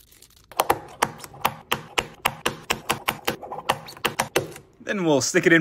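A metal tool taps rapidly against glass.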